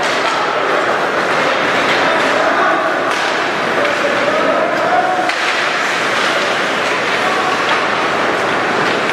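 A crowd cheers and shouts in a large echoing rink.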